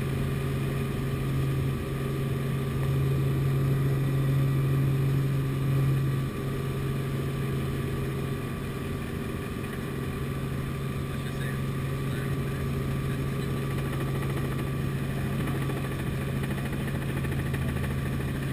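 A helicopter engine and rotor drone steadily from inside the cabin.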